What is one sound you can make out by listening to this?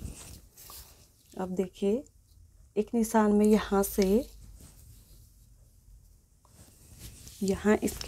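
A tape measure rustles over cloth.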